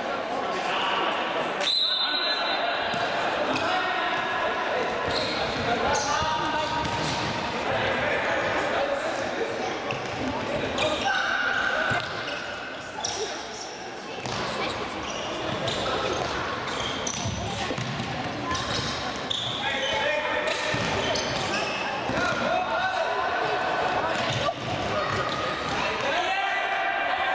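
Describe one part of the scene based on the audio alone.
A ball thuds as it is kicked.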